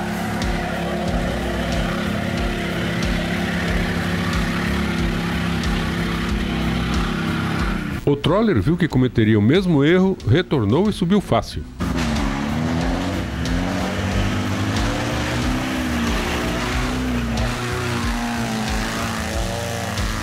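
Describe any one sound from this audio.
An engine roars and revs hard as a vehicle climbs through mud.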